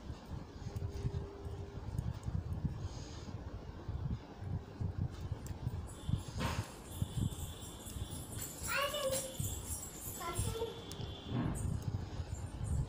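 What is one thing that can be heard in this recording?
Knitting needles click and tap softly against each other.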